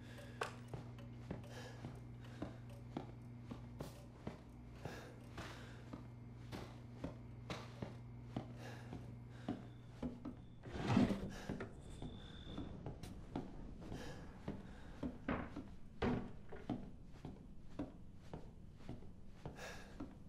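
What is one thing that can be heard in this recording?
Footsteps creak slowly across wooden floorboards.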